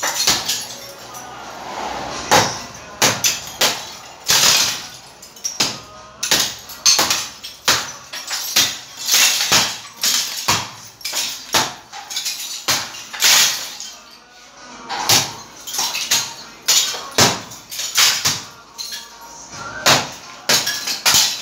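A hammer bangs hard against brick walls again and again.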